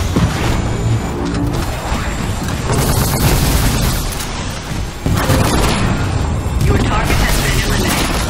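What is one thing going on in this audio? Explosions rumble loudly.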